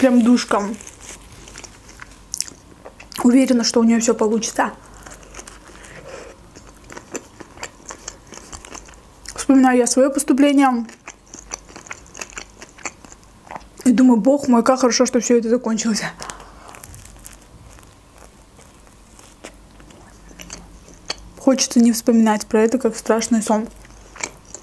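A young woman speaks softly close to a microphone, in short bursts.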